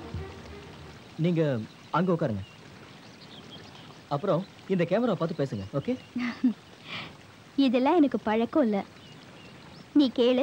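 Water splashes down a waterfall.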